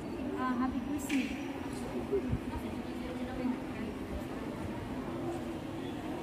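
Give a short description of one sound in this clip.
An elderly man talks calmly, close by, in an echoing hall.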